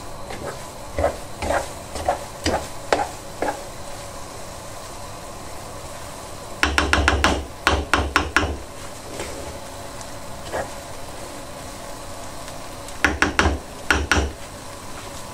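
A wooden spoon scrapes and knocks against a metal pan while food is stirred.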